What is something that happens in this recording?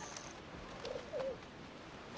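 A parrot squawks.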